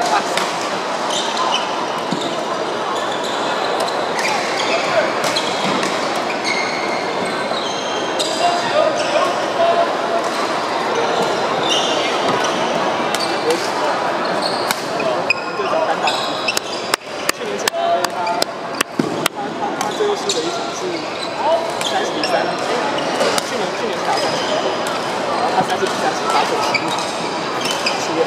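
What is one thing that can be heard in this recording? A crowd of men and women chatters steadily in the background.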